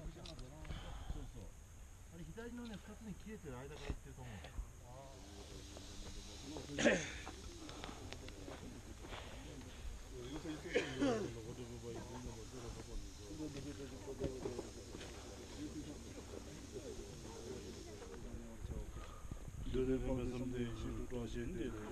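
Men talk and chant together nearby.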